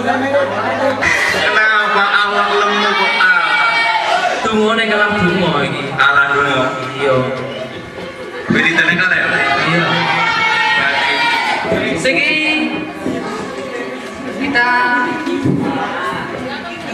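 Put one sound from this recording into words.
A young man sings loudly through a microphone and loudspeakers.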